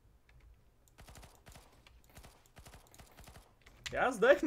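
A rifle fires quick bursts of shots.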